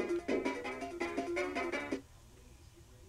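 Bouncy electronic game music plays.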